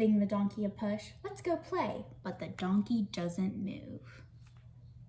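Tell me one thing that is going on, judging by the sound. A young woman reads aloud close by.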